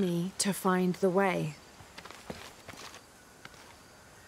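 Footsteps tread softly on a stone path.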